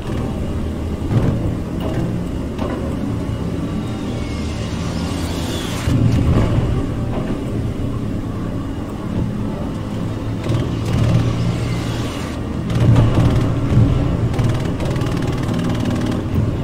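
A vehicle engine rumbles steadily as it drives.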